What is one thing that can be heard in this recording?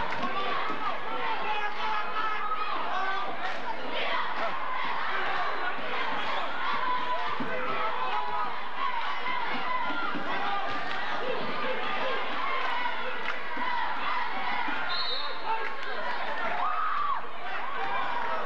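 A large crowd cheers and shouts steadily in an echoing gym.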